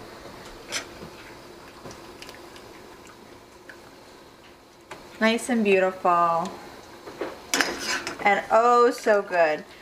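Metal tongs clink against a pan.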